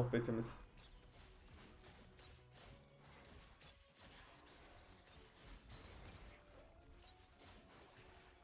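Small fighters clash and spells crackle faintly in a game battle.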